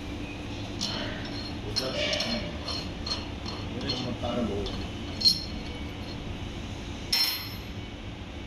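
Metal parts clink and knock against each other.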